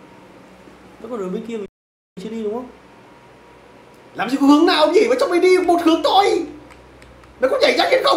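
Two young men talk with animation close to a microphone.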